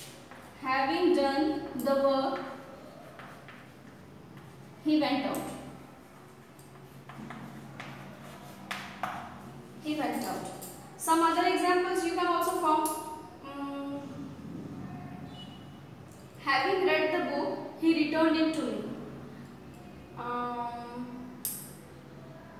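A young woman speaks clearly and calmly, as if teaching, close by.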